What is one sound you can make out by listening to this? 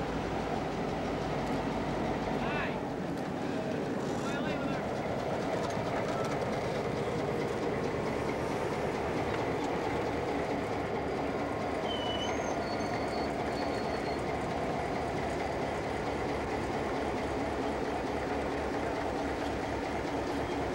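A diesel road-switcher locomotive's engine rumbles as the locomotive rolls slowly past.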